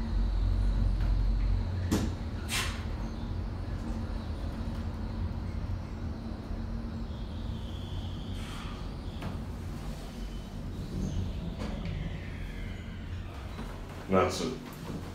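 An elevator car hums steadily as it travels down.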